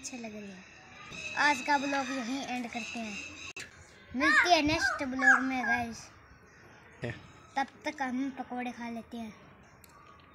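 A young boy talks close by with animation.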